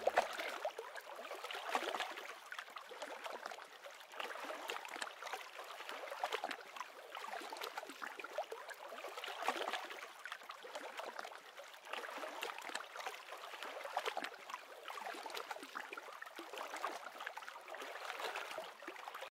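Small waves lap and slosh gently on open water.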